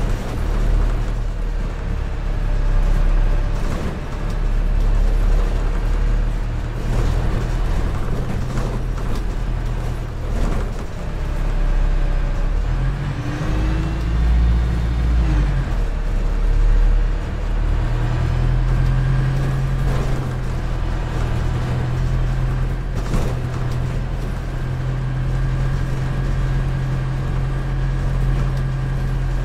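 A bus engine whines and changes pitch as the bus speeds up and slows down.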